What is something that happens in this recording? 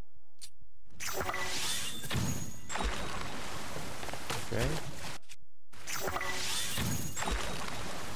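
A magical blast whooshes and rumbles.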